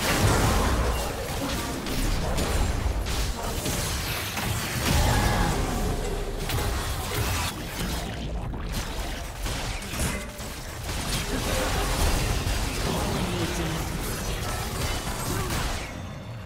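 Video game spell effects whoosh and burst during a fight.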